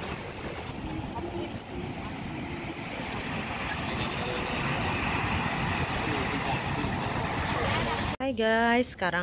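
Small waves wash gently onto a beach outdoors.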